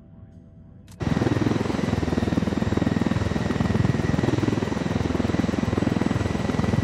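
A helicopter's rotor thumps loudly in flight.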